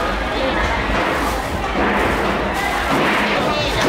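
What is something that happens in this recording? A plastic bag rustles as leafy greens are stuffed into it.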